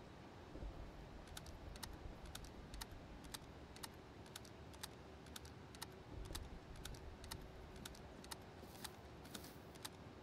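Footsteps crunch steadily on hard ground.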